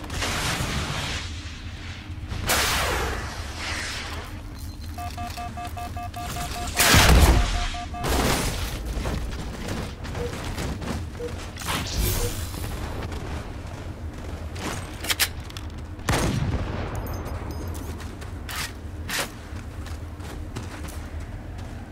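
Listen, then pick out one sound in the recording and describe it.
Video game gunfire rings out in bursts.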